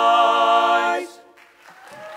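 A group of men sing a chord together in close harmony and hold it to the end.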